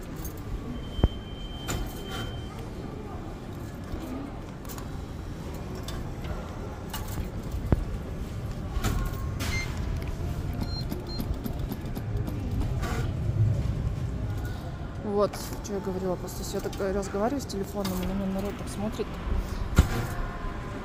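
A plastic arcade button clicks sharply a few times.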